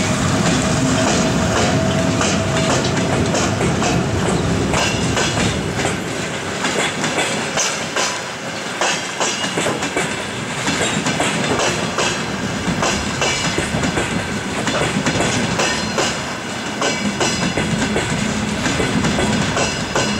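A passenger train rolls past close by, its wheels clattering over rail joints.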